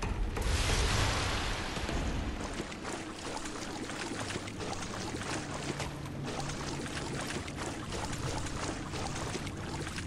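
Footsteps thud along a stone corridor.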